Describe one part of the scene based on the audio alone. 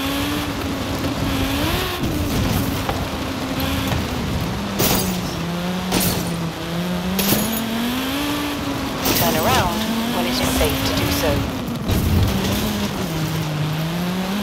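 Tyres skid on loose dirt.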